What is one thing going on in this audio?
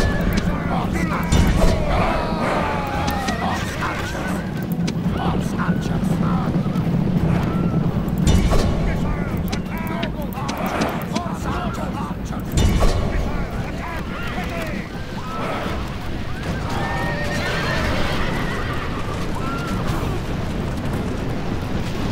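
Many horses gallop over snowy ground.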